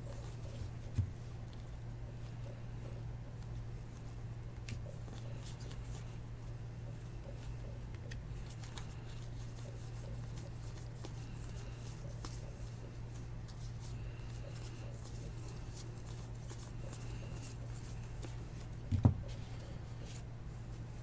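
Trading cards rustle and slide softly as they are shuffled by hand.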